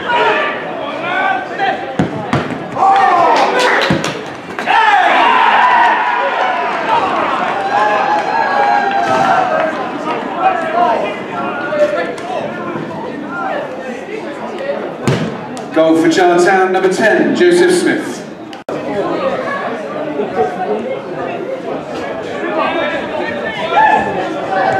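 A small crowd of men cheers and shouts nearby, outdoors.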